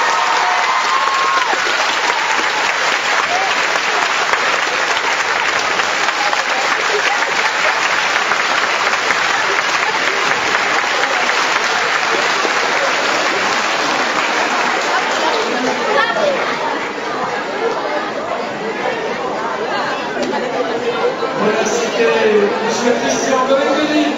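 A children's choir sings together in a large hall.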